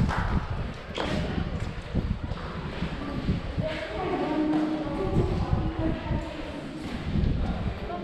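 Footsteps scuff on wet stone in a narrow echoing passage.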